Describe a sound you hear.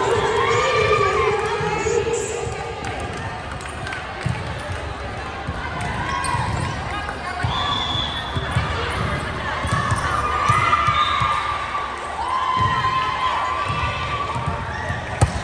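Volleyballs thud against hands and bounce on a wooden floor.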